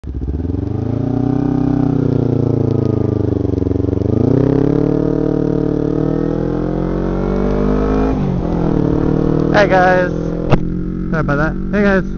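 A car engine hums and rises in pitch as the car speeds up.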